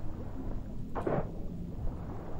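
A crossbow fires with a sharp twang.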